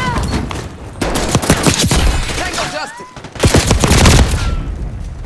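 A rifle fires several loud bursts of gunshots echoing in a tunnel.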